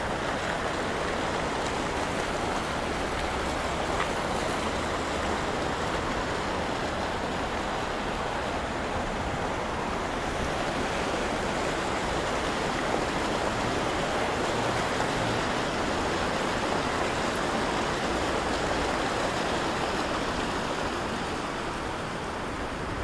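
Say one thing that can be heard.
Fountain jets splash and gush steadily into a shallow pool nearby.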